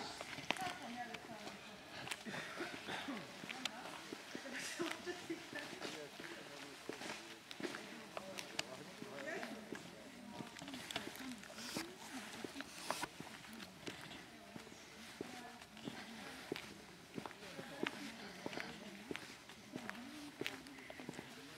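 Footsteps scuff on a concrete road.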